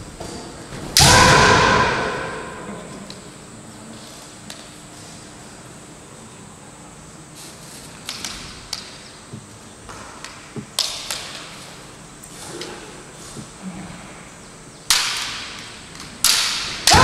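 A man lets out a loud, sharp shout in a large echoing hall.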